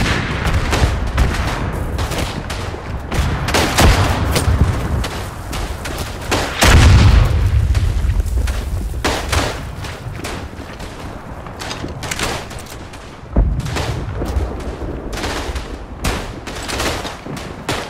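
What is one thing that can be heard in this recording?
Gunfire and explosions crack and boom all around, near and far.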